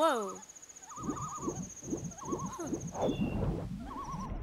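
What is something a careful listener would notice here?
Water splashes in quick, regular strokes as someone swims.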